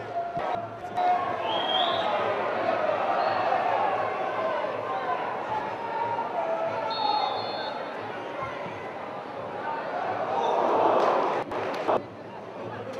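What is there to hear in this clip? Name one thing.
A crowd in a large open stadium cheers and shouts, swelling loudly before dying away.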